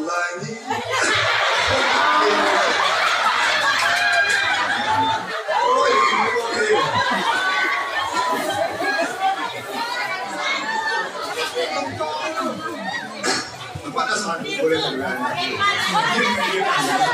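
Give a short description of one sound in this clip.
A man sings into a microphone over a loudspeaker in an echoing hall.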